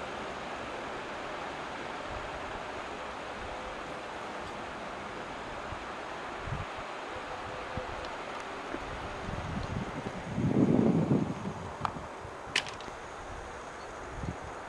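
A shallow river rushes steadily over stones.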